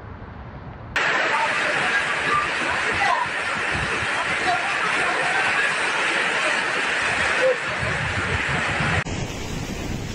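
Heavy rain and wind hiss and howl loudly.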